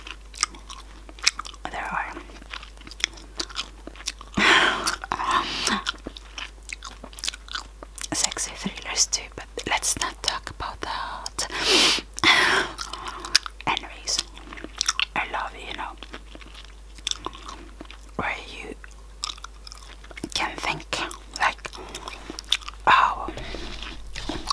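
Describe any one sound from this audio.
A woman whispers softly, very close to a microphone.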